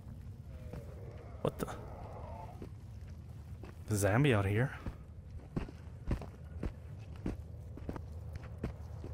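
Footsteps crunch slowly over a dirt path.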